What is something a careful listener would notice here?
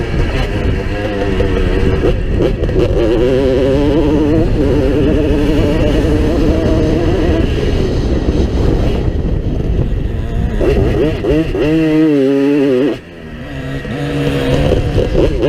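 A dirt bike engine revs loudly up close, rising and falling in pitch.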